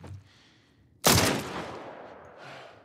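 A pistol fires a single loud shot that echoes briefly.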